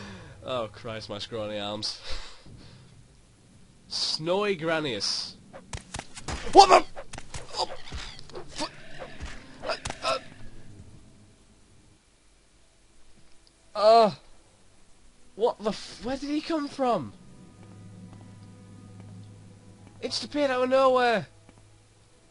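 A young man talks and laughs with animation, close to a microphone.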